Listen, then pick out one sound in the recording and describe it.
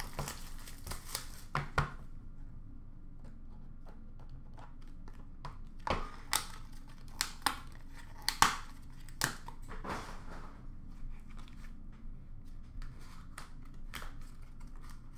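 Plastic cases clack and rustle as hands handle them.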